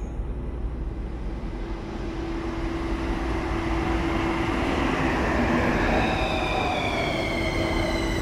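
A subway train rumbles into an echoing underground station, growing louder.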